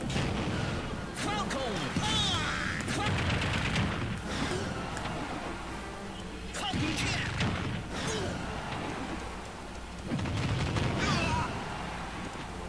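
Video game fighting sounds play, with sharp hits and blasts.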